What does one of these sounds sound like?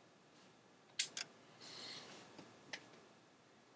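Short electronic menu blips sound a few times.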